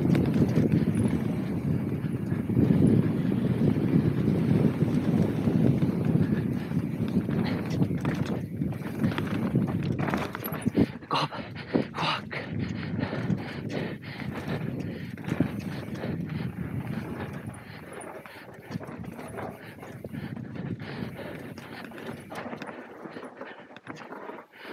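Bike tyres rumble and skid over dry dirt and grass.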